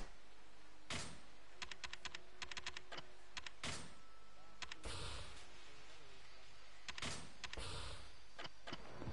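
Menu selections click in quick, sharp ticks.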